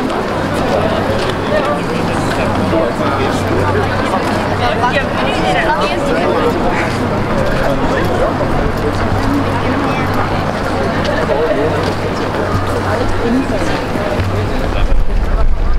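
Footsteps scuff on cobblestones nearby.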